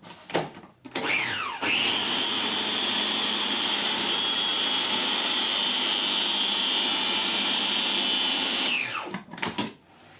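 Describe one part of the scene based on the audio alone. A food processor motor whirs loudly, rising and later winding down.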